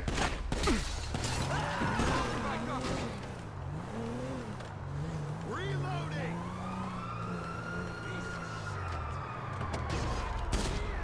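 A car engine revs as the car pulls away.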